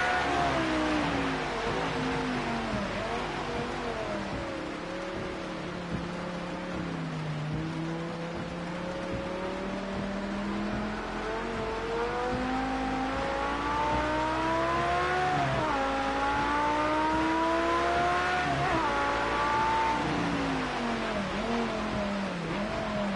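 Rain patters on a car's windscreen.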